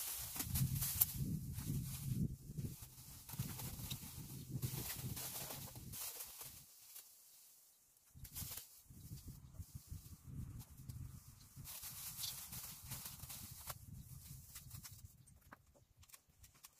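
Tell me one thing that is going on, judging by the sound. Thin plastic sheeting crinkles and rustles as it is smoothed over a window.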